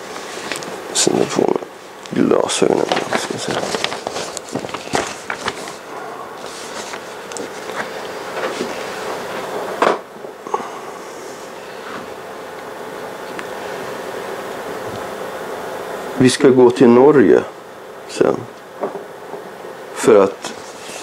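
A middle-aged man reads aloud calmly.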